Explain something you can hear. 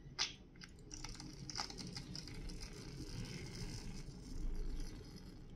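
Shaving foam hisses out of a can.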